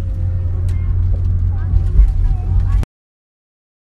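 A car engine rumbles low from inside a moving car.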